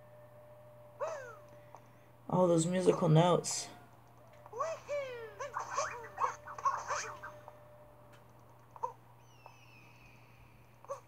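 Bouncy game sound effects chirp and boing.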